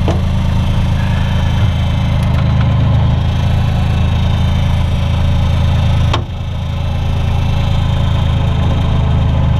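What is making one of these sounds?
A diesel engine idles with a low, steady rumble close by.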